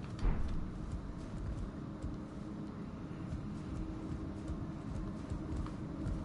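A character's footsteps thud on wooden planks.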